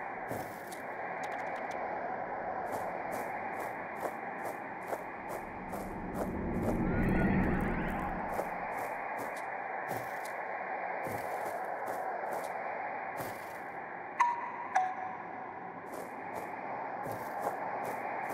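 Light footsteps patter quickly.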